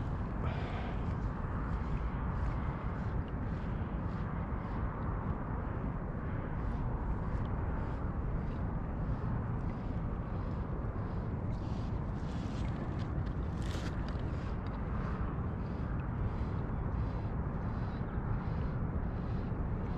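Small ripples lap softly against a kayak hull.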